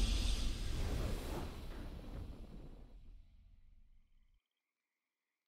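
A triumphant game victory fanfare booms and fades away.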